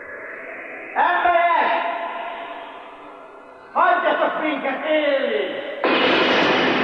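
A man sings out loudly and with feeling.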